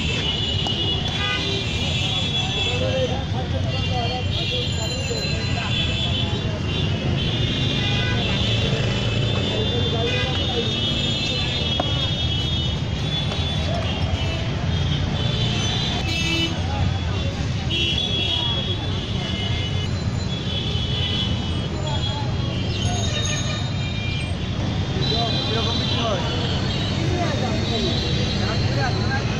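Crowd chatter and street noise fill the air outdoors.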